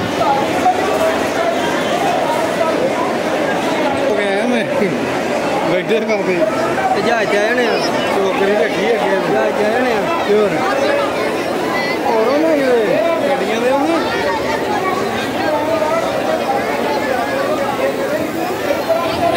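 A large crowd of men and women chatter all around.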